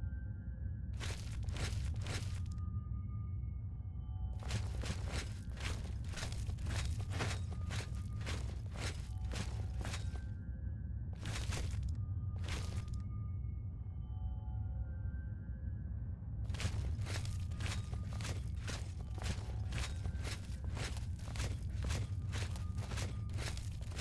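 Footsteps tread steadily on a hard stone floor in an echoing space.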